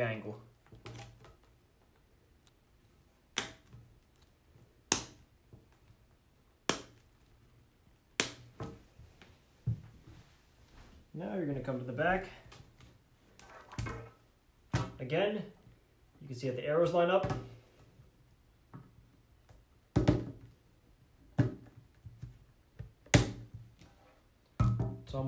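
Plastic grid panels click and snap together.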